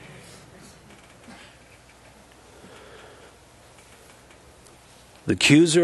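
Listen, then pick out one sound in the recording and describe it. A man speaks calmly into a microphone, reading aloud.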